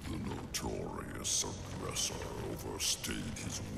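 Heavy stone blocks grind and rumble as a giant stone creature shifts.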